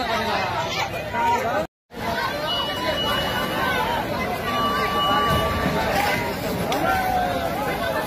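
A large crowd of men and women talks and shouts excitedly close by.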